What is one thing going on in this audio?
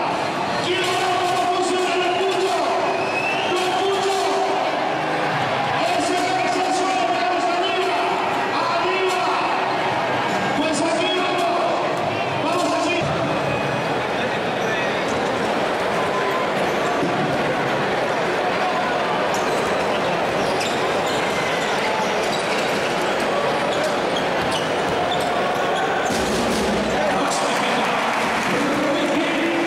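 A large crowd chants and cheers in an echoing arena.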